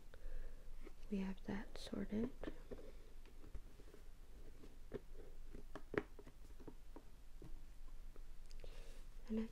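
A plastic box knocks and rattles as it is handled.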